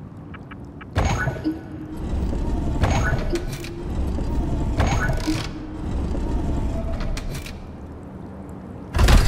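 A heavy metal mechanism clunks and whirs.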